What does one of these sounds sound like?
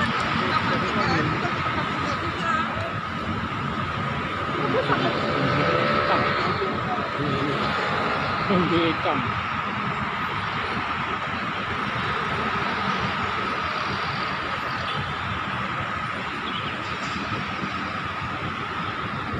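City traffic hums steadily in the distance below.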